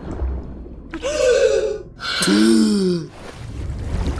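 A young woman gasps loudly for air.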